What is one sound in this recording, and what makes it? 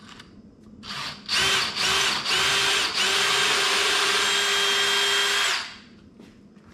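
A cordless drill whirs steadily as it bores into wood.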